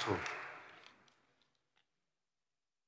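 A man speaks briefly through a microphone in a large, echoing hall.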